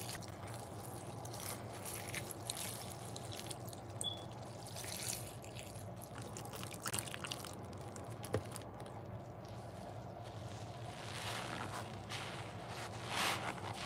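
Foamy water fizzes and crackles with popping bubbles.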